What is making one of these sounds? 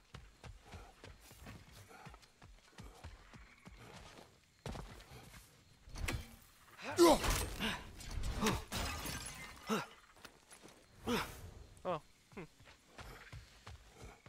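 Heavy footsteps thud on stone.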